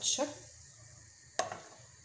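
A ladle clinks against a bowl.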